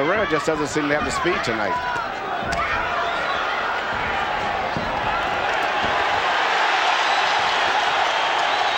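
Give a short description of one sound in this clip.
A large crowd cheers and roars in a big echoing arena, growing louder.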